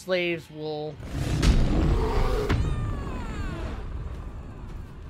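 A deep magical whoosh rumbles, swells and fades away.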